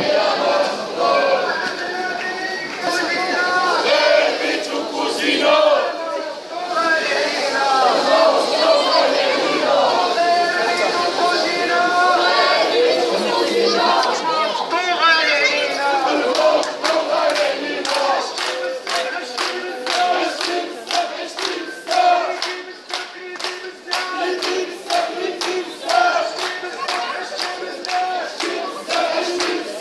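A crowd of marchers chants and shouts loudly outdoors.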